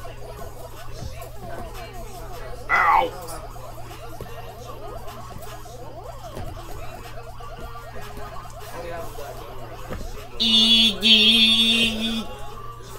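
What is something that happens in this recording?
Quick electronic chomping blips from a retro arcade game play steadily through a television speaker.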